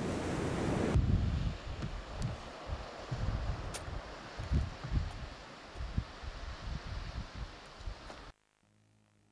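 Wind buffets a microphone in low, rumbling gusts.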